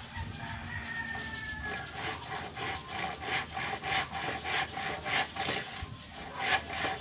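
Bamboo poles creak and knock as a man ties them together.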